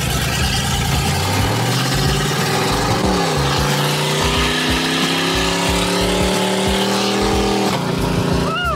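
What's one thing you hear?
A car engine hums and rises in pitch as the car speeds up.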